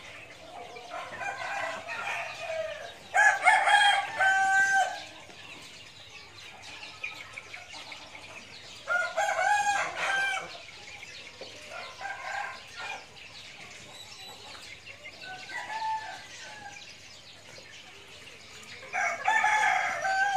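Chickens cluck and call loudly nearby.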